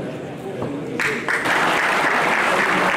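People applaud loudly.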